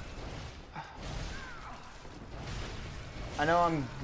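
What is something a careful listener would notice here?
A blade swishes and strikes in a fight.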